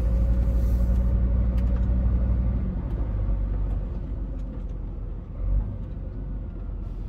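A truck's diesel engine hums low and steady from inside the cab, easing off as it slows.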